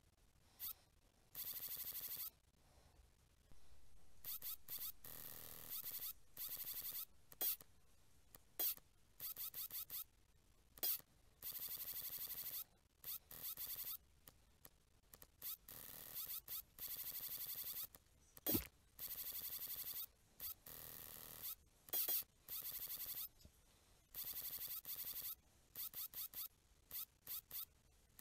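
A mechanical claw whirs in short bursts as it moves.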